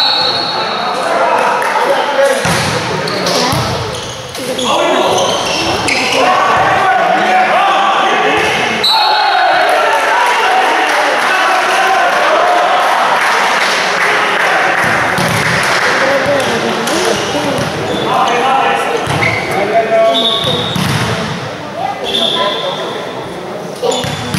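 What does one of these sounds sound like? Players shout and call out in an echoing hall.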